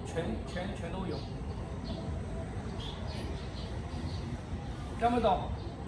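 An older man speaks calmly and explains, close by.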